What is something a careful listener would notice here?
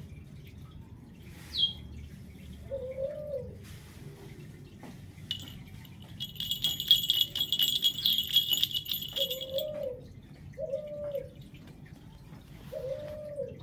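A hand rubs a dog's fur softly.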